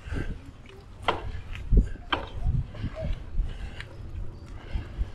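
Bicycle tyres thump over wooden bridge planks.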